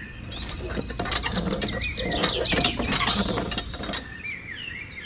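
A toy hand pump's handle creaks as it is worked up and down.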